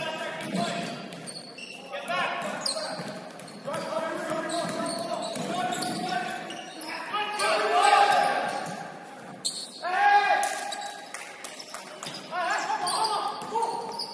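Sneakers squeak sharply on a hardwood floor in an echoing gym.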